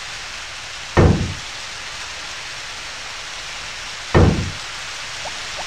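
A tool strikes a tree stump with heavy thuds.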